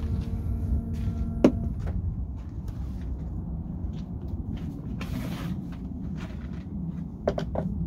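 Tools clatter as a man rummages in a car boot.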